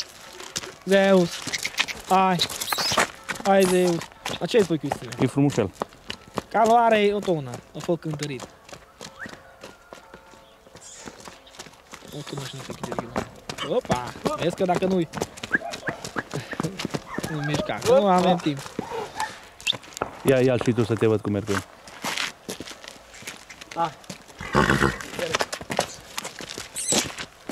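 Horse hooves clop on a dirt road.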